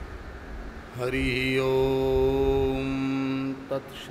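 A man chants a long, steady note into a microphone.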